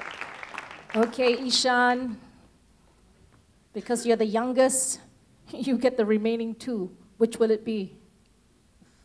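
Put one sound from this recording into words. A woman speaks with animation through a microphone in an echoing hall.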